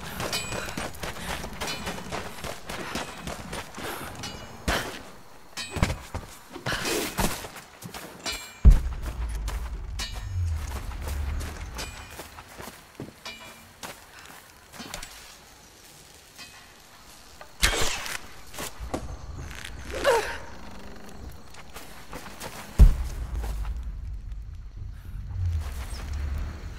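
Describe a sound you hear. Footsteps thud on grass and wood.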